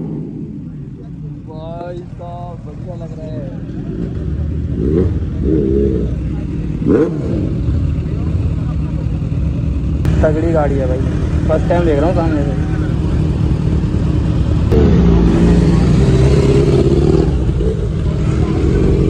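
A motorcycle engine idles and rumbles nearby.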